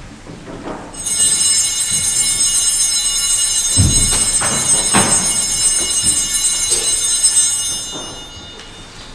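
Small bells ring brightly, echoing in a large hall.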